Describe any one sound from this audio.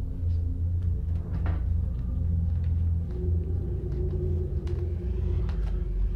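Footsteps come across the room.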